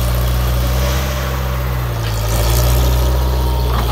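Gravel crunches under a skid steer loader's tyres.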